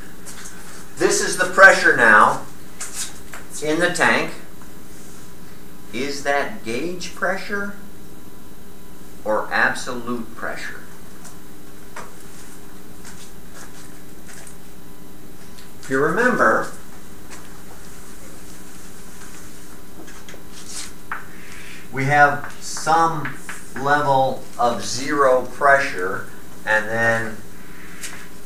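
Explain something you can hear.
An elderly man lectures calmly, in pauses.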